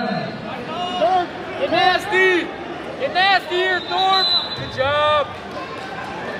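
Spectators yell loudly in high, excited voices.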